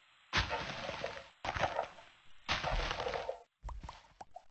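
Dirt blocks crunch and break under a digging shovel in a game.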